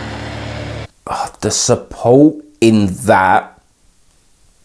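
A man vocalizes loudly in a high, gliding voice close to a microphone.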